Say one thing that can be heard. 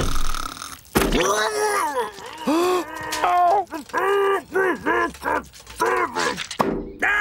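An elderly woman wails and cries out, muffled.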